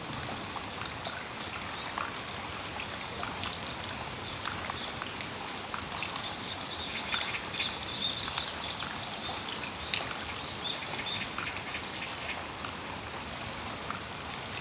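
Rain patters steadily on a metal roof and awning.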